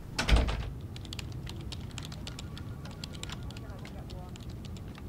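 Keys click as someone types on a laptop.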